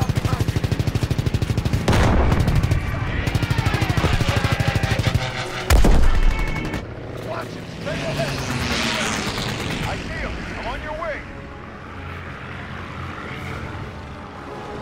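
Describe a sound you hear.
A radial-engine propeller fighter plane drones.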